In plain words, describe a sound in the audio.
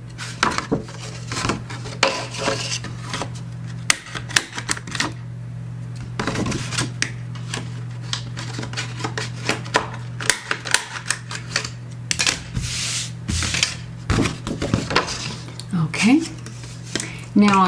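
Cardboard rustles and flaps as it is handled.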